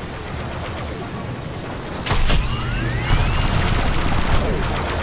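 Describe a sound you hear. A starfighter engine roars.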